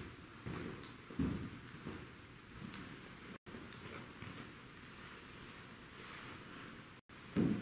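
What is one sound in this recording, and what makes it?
Footsteps thud slowly on a wooden floor in a quiet, echoing hall.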